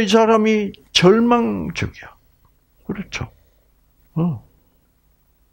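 An elderly man speaks with animation through a headset microphone, in short bursts with pauses.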